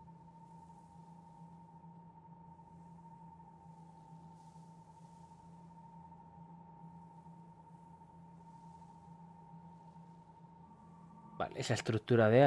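A steady, low hum rings from a glowing sword.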